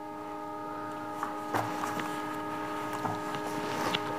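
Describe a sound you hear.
Paper rustles as a book is moved and its pages are handled.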